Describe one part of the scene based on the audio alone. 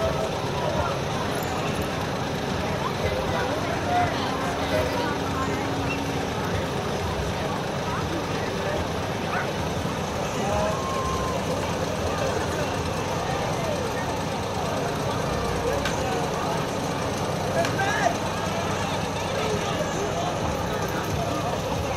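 A crowd of people chatter and cheer outdoors.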